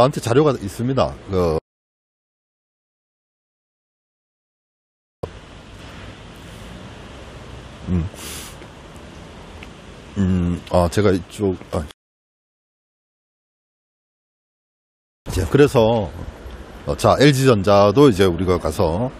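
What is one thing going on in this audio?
A middle-aged man speaks calmly into a close microphone.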